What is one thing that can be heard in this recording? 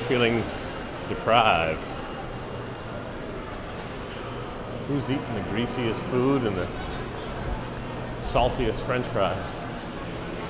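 Adults talk at a distance in a large, echoing hall.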